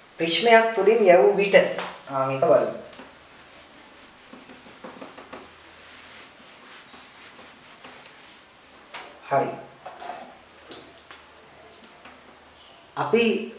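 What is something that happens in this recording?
A man speaks calmly and clearly nearby.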